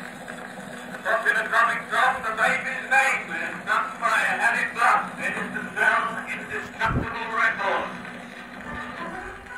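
A tinny old recording of music plays from a phonograph.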